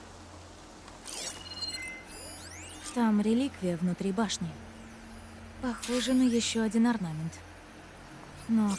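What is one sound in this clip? A high electronic shimmer rings out and fades.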